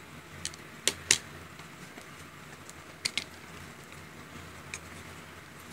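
Plastic makeup cases click and tap against a hard surface.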